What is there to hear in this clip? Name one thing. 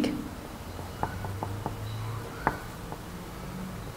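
A pen taps and scratches on paper.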